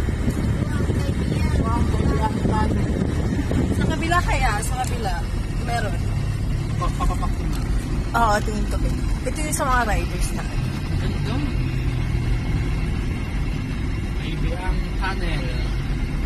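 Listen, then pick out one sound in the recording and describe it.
Tyres rumble steadily on the road.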